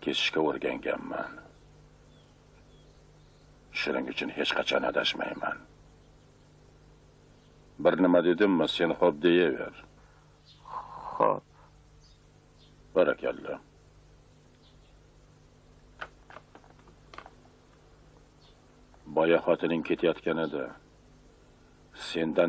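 Two men talk calmly close by, taking turns.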